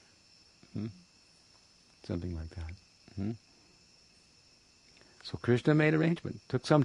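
An elderly man speaks calmly in short bursts close by.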